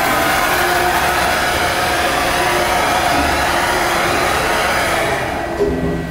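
A motorised machine whirs steadily and then winds down.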